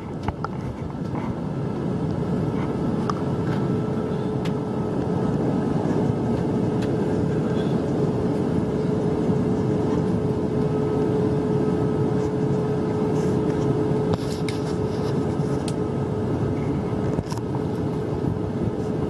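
A steady jet engine roar fills an aircraft cabin.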